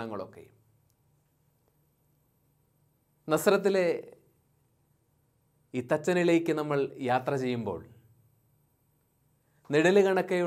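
A man speaks calmly and expressively into a close microphone, with pauses.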